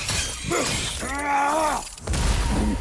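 A creature lets out a high, wavering cry.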